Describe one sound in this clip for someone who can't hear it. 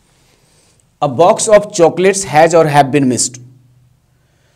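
A man speaks clearly and with emphasis.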